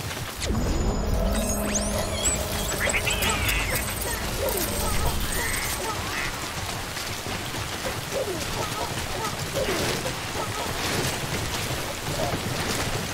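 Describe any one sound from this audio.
Footsteps crunch on loose rocky ground.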